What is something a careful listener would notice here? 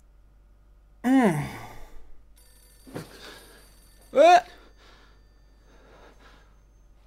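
A man exclaims loudly and with animation close to a microphone.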